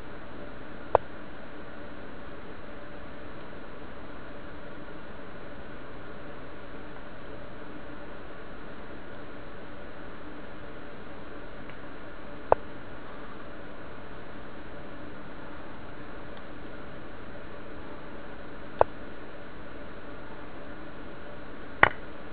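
A short, sharp click sounds now and then as a game piece is moved.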